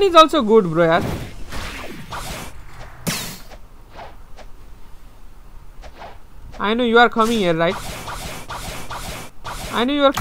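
Sword slashes and hits land in quick bursts.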